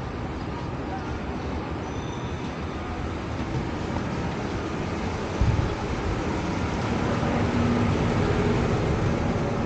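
Wind rumbles across the street outdoors.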